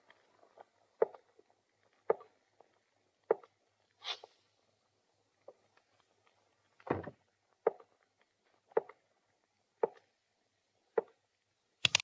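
Boots step slowly and steadily across a wooden floor.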